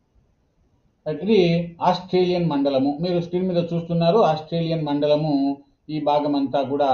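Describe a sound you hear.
A man speaks calmly and steadily into a microphone.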